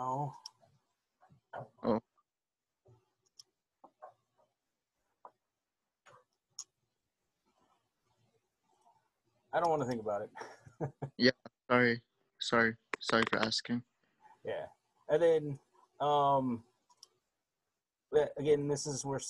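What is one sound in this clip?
A man speaks calmly over an online call, pausing between words.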